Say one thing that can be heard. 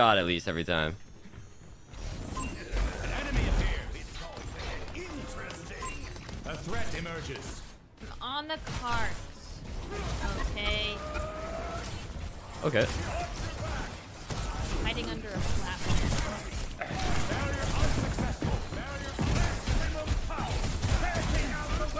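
Video game gunfire and energy blasts crackle and boom.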